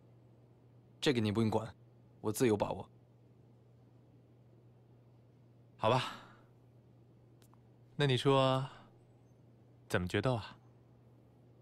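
A second young man answers calmly and closely.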